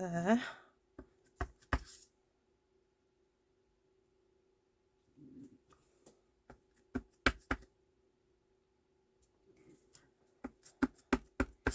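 A rubber stamp taps repeatedly on an ink pad.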